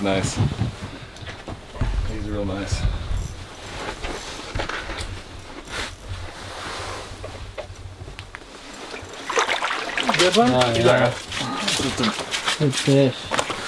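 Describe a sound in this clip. Boots crunch on snow and ice.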